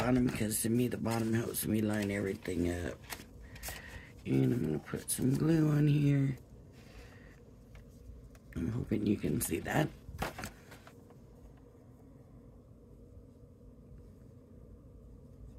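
Stiff paper rustles and slides as it is handled.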